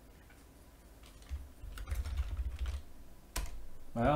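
A computer keyboard clicks as a man types.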